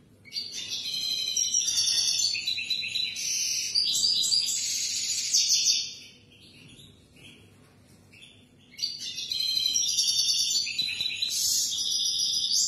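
A small caged bird sings a rapid, warbling song close by, pausing briefly before singing again.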